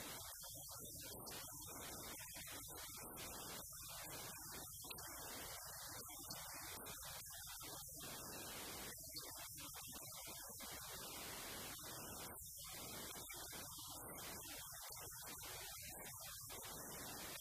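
A woman speaks steadily and with animation into a microphone.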